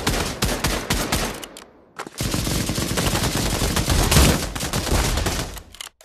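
A rifle bolt clacks as it is worked back and forth.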